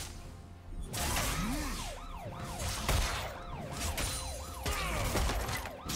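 Magic spells whoosh and zap in a fast video game fight.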